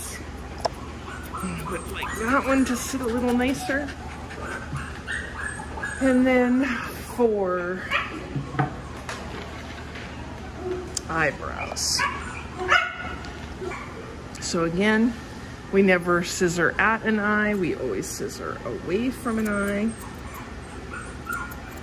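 Scissors snip through hair close by.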